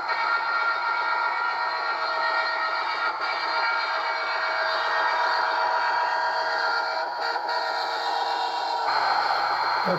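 A model train hums and clatters as it rolls along the track.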